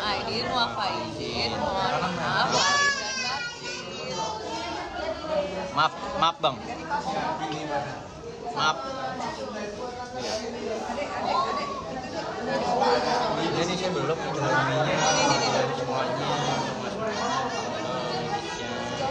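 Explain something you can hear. A young woman talks brightly, close by.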